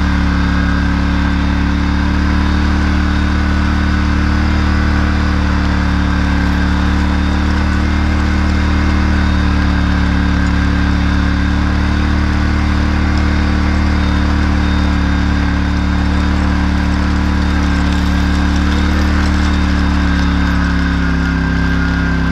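A metal harrow rattles and clanks as it drags over soil.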